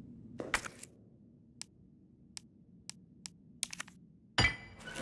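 Menu selections click softly.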